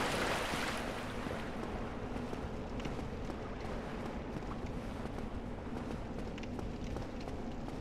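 Footsteps patter on stone steps.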